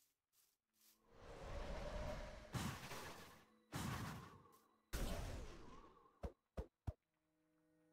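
A sword strikes a creature with hard hits.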